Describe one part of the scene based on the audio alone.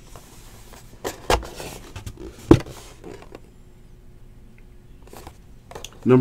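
A cardboard box knocks and taps as it is handled.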